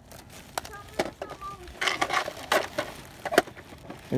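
A toy cash register drawer snaps open.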